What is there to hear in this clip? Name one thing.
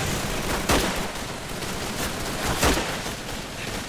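Loud gunshots ring out.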